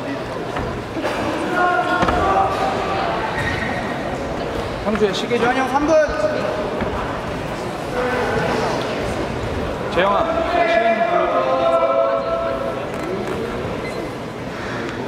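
Men shout instructions nearby in a large echoing hall.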